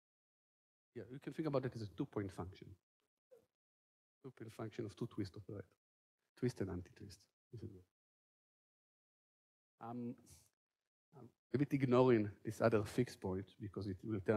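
A man lectures calmly through a microphone, in short bursts with pauses.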